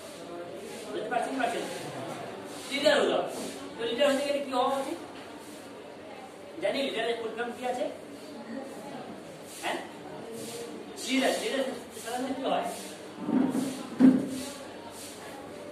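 A young man speaks loudly from across a small echoing room.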